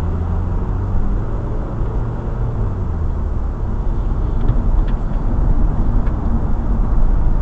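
Tyres roar on the road, echoing in an enclosed space.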